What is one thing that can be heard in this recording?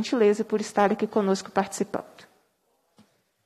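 A young woman speaks clearly into a microphone.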